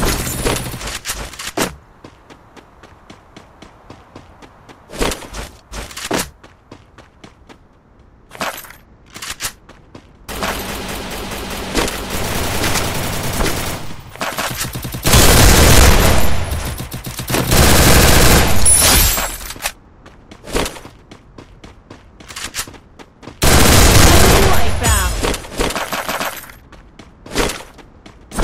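Footsteps patter quickly on hard floors.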